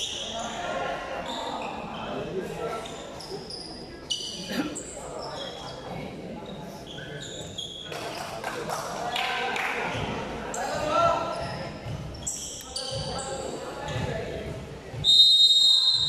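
Sports shoes squeak sharply on a hard court floor.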